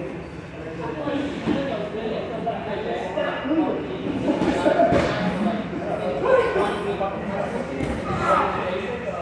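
Bodies shuffle and thud on floor mats.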